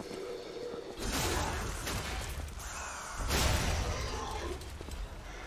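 A heavy weapon swings and strikes with loud whooshing impacts.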